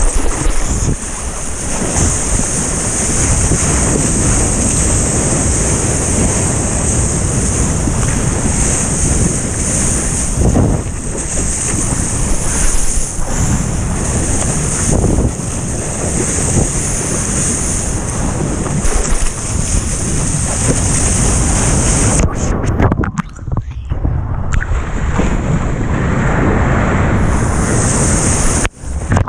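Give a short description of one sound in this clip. Water rushes and splashes around a surfboard close by.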